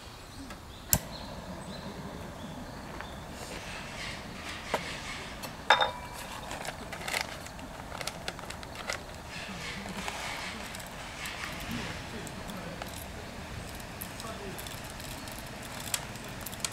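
Utensils clink and knock on a metal table.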